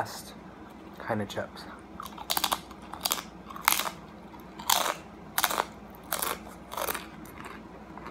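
A crisp chip crunches loudly as a young man bites and chews.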